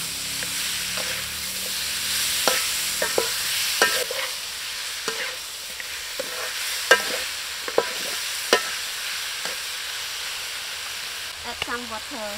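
A metal spatula scrapes and clanks against a pan.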